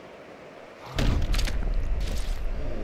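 A body crashes heavily to the floor.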